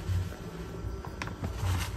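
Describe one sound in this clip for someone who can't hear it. Powder pours softly into a pan.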